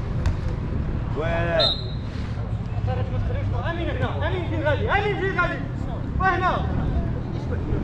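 Men shout to each other across an outdoor pitch.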